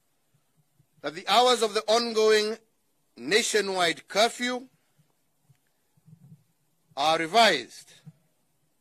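A man speaks slowly and formally into a microphone, in short phrases with pauses.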